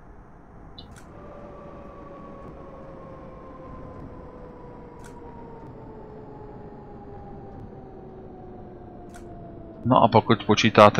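A tram's electric motor whines, falling in pitch as the tram slows down.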